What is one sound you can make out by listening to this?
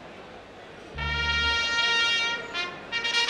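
An orchestra strikes up a loud, sustained chord.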